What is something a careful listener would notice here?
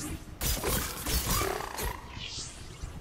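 Heavy weapon blows strike a large beast in a fight.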